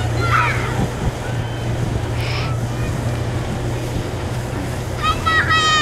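Young children shout and squeal playfully outdoors.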